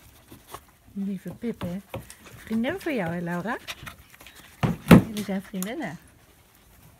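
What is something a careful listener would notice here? A dog whines and yelps up close.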